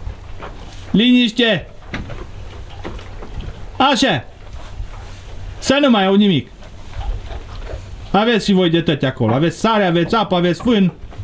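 Goats bleat loudly and repeatedly close by.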